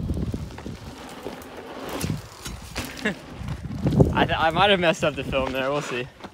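Bicycle tyres crunch over a dirt trail.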